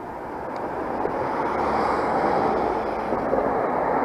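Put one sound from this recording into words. A small truck drives past close by.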